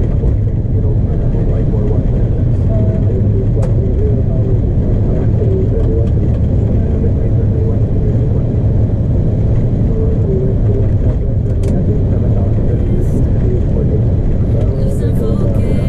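Jet engines roar steadily as an airliner rolls down a runway.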